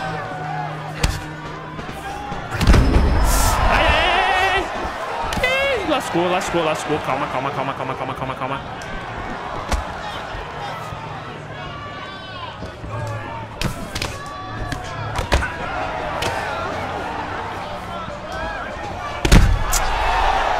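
Punches thud against a fighter's body.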